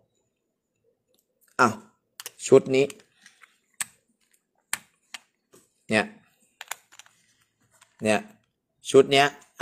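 Plastic coin capsules click and clack together as they are stacked.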